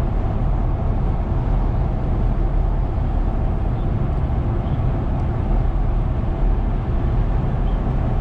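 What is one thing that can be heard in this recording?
A large truck roars past close by.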